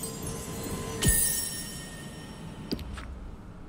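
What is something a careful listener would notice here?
A magical sparkle chimes brightly.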